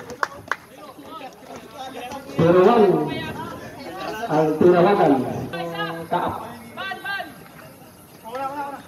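Young men shout and call out to each other nearby.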